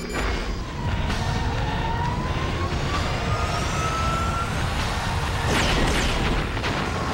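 A flying craft whooshes past overhead.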